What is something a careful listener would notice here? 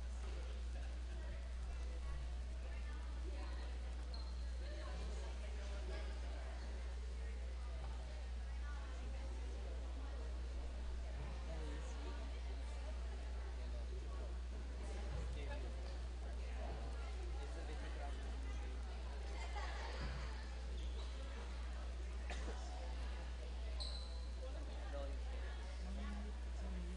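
Girls chatter and talk in huddles in a large echoing gym.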